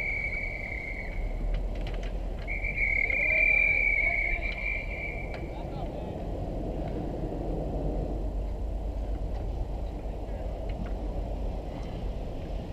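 Ice hockey skates scrape and carve across the ice.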